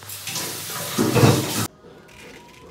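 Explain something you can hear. Food sizzles loudly in a hot pan.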